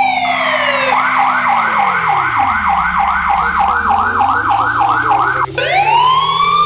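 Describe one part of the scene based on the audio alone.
A police siren yelps in a fast, rapid warble.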